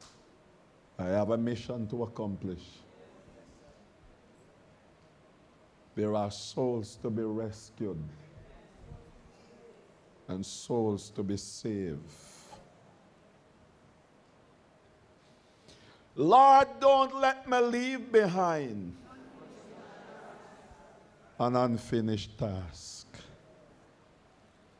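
An elderly man preaches into a microphone in short, forceful bursts, heard through a loudspeaker in a reverberant room.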